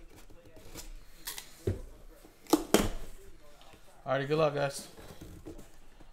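Cardboard scrapes and thumps as a box lid is opened.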